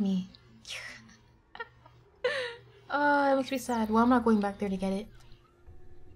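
A young woman talks with animation into a microphone, with rising and falling pitch.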